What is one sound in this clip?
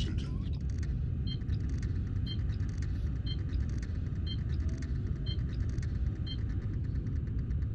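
Soft electronic beeps tick at an even pace.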